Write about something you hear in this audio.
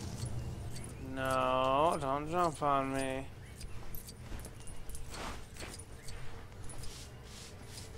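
Small coins jingle as they are picked up in quick succession.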